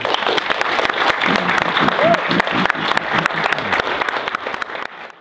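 A large audience claps and applauds loudly.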